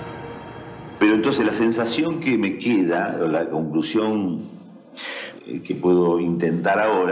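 A middle-aged man speaks cheerfully nearby.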